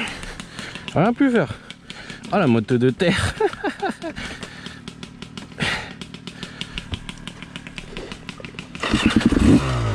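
A motorcycle engine idles with a rapid, even ticking.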